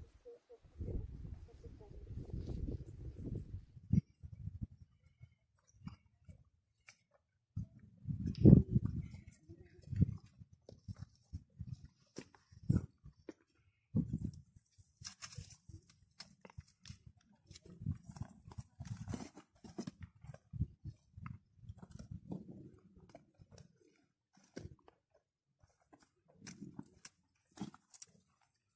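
Footsteps crunch on loose rocks and gravel.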